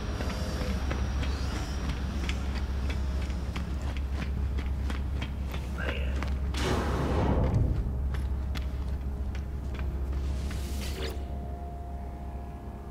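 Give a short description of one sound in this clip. A low electric hum drones throughout.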